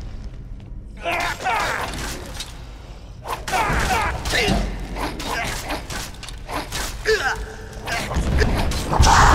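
Swords clash and strike against armour in a fight.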